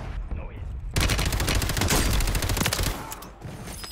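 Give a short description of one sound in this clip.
A rifle fires a rapid burst of shots in an echoing room.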